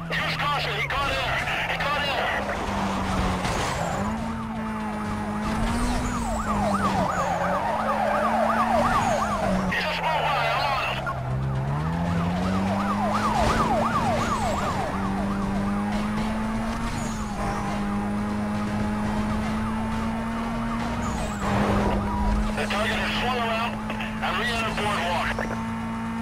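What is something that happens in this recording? A police siren wails close by.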